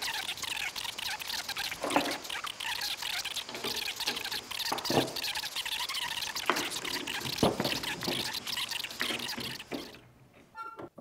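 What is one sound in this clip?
Wooden boards knock and clatter against a workbench.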